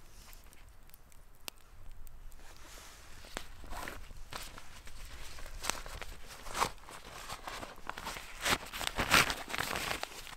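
A nylon bag rustles and crinkles.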